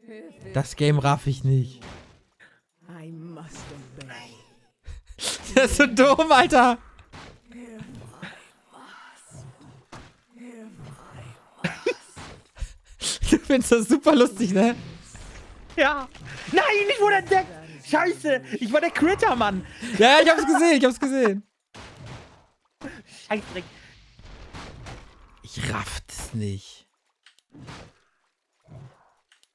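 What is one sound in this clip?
A second man talks loudly and excitedly close to a microphone.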